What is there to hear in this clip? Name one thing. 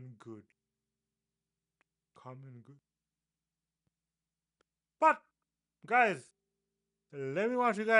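A young man speaks with animation into a close microphone, in short bursts.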